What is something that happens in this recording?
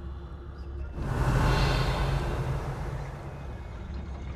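A magical shimmer swells and then fades away.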